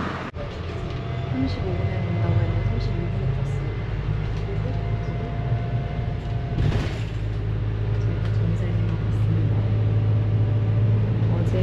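A bus engine rumbles low and steady from inside the cabin.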